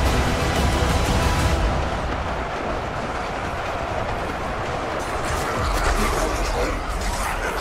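Many guns fire rapidly in a loud battle.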